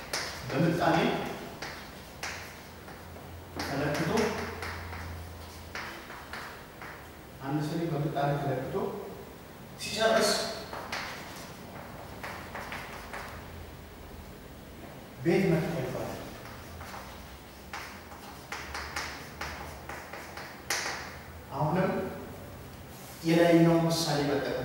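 A man speaks loudly in short, spaced bursts.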